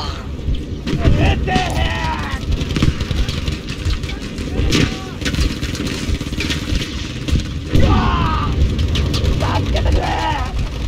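Gunfire rattles and cracks nearby.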